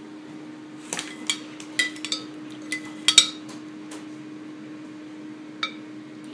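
A metal spoon scrapes and clinks against a ceramic pot.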